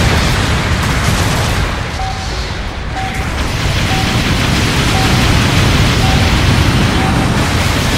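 Heavy gunfire rattles in bursts.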